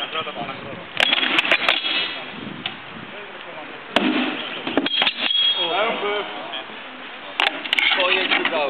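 Swords clash against shields with sharp knocks.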